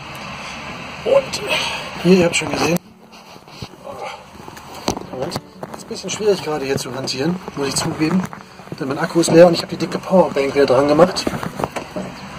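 A young man talks casually, close to the microphone.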